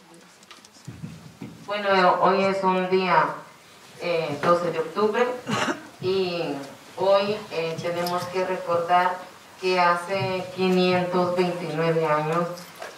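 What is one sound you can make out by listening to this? A middle-aged woman speaks calmly into a microphone, heard through a loudspeaker.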